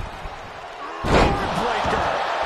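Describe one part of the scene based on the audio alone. A heavy body thuds onto a wrestling ring mat.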